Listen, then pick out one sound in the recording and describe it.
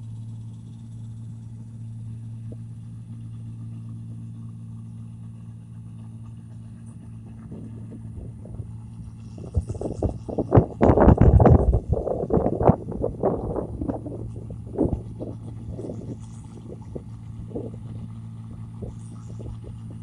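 A combine harvester engine hums steadily in the distance.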